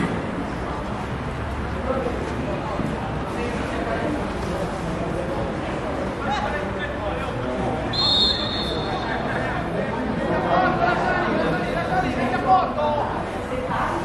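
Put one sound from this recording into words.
Young men shout to each other across a playing field.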